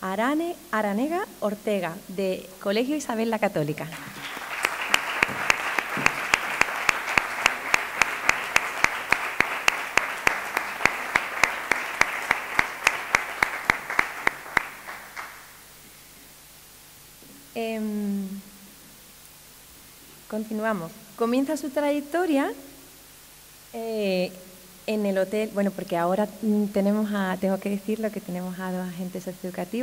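A young woman speaks into a microphone over a loudspeaker.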